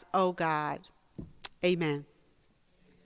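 An elderly woman sings slowly into a microphone in a reverberant hall.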